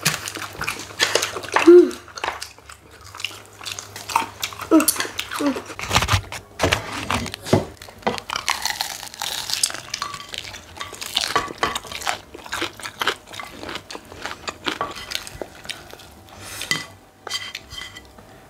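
Crispy fried chicken crunches loudly close by.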